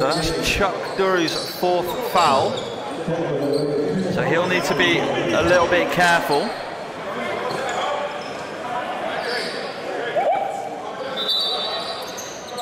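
Spectators chatter in the background.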